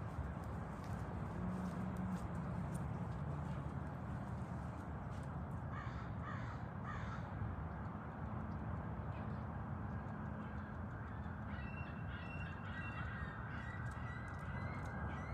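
A dog's paws pad softly on grass.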